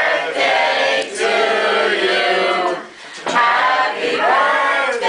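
A group of men, women and children sing together close by.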